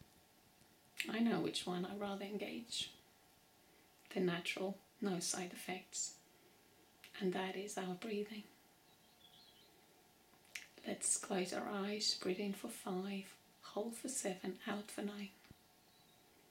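A woman speaks calmly and warmly, close to the microphone, in short phrases with pauses.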